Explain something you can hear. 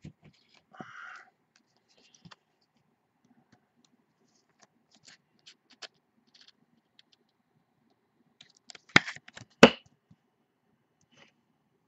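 A plastic card case clicks and rattles in hands.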